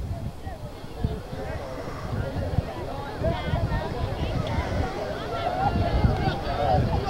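Wind rumbles across the microphone.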